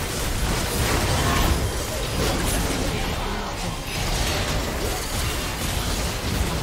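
Magic blasts crackle and boom in a busy battle.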